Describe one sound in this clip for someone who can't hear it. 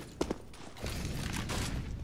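Footsteps patter on stone as a figure runs.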